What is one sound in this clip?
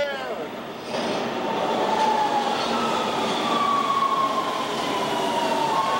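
A subway train rumbles loudly into an echoing station.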